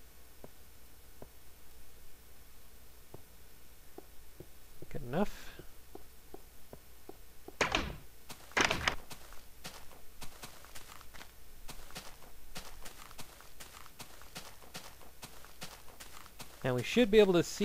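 Footsteps tap softly on grass and stone.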